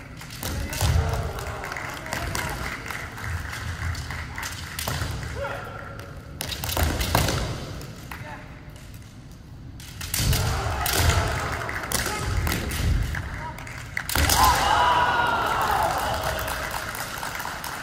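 Kendo fighters shout loud, drawn-out cries in a large echoing hall.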